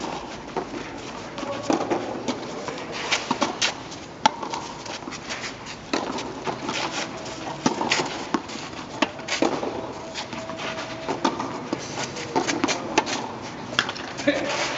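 Tennis balls are struck with rackets in a steady rally, each hit a sharp pop.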